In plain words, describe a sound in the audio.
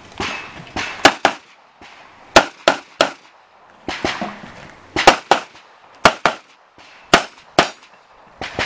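A 9mm pistol fires rapid shots outdoors.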